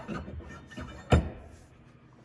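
A metal pole clunks into a floor socket.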